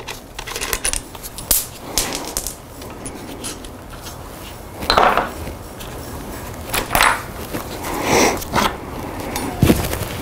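Bicycle cables and handlebars rattle and knock as they are moved.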